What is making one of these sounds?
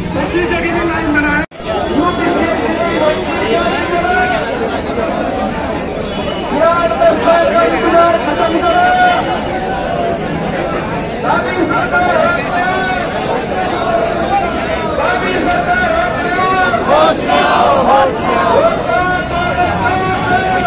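A young man talks loudly close by.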